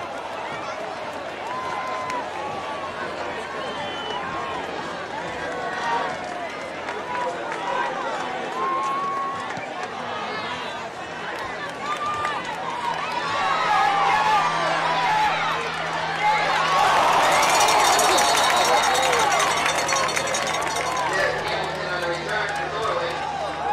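A crowd of spectators chatters and calls out across an open field.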